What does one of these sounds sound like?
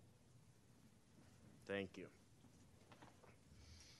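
People shuffle and sit down in their chairs.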